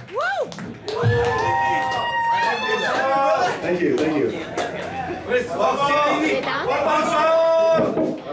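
A live band plays rock music with bass and electric guitar.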